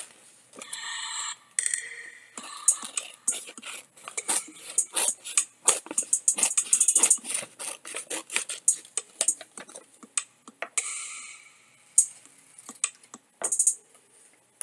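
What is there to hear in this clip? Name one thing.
A cardboard box crinkles and rustles in someone's hands.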